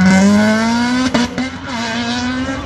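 A car exhaust pops and crackles.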